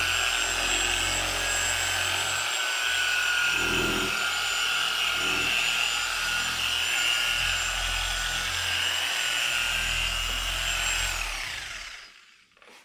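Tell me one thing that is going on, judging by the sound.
A power polisher whirs steadily close by.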